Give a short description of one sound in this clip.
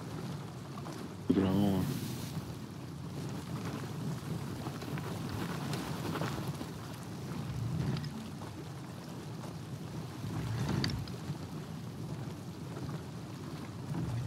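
Waves wash steadily against a wooden ship's hull.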